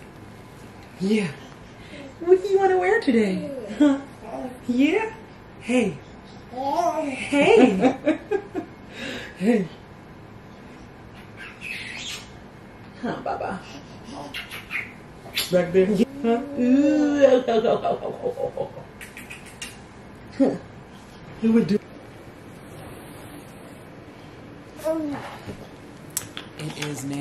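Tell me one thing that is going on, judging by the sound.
A young woman talks playfully and coos close by.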